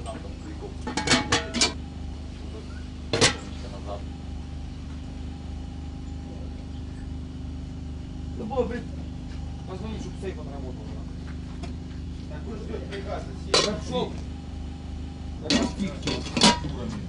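Metal pots and lids clank and clatter as a man handles them.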